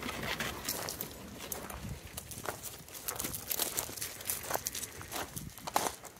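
Dogs' paws crunch on gravel.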